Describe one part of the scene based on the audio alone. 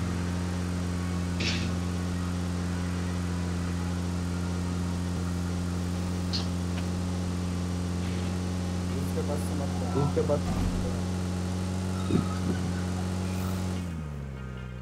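A vehicle engine drones steadily as it drives along a road.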